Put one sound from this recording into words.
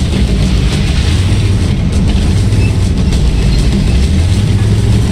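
A heavy tank engine rumbles low and steady as the tank drives forward.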